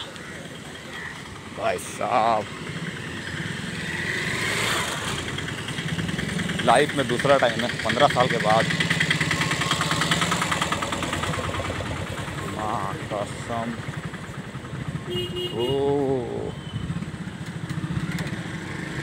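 Motorcycle and auto-rickshaw engines hum and putter nearby.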